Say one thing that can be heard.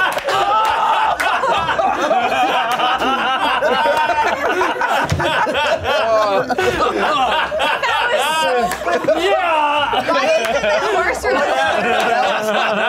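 Several young men laugh loudly and talk over each other close by.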